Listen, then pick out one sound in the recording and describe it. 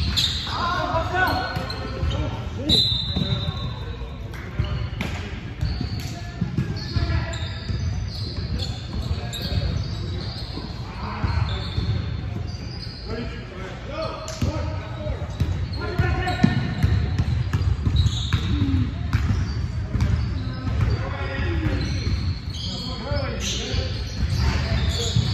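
Sneakers squeak sharply on a hardwood court, in a large echoing hall.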